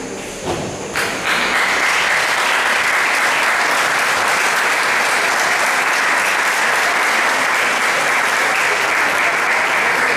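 A crowd applauds steadily in a large echoing hall.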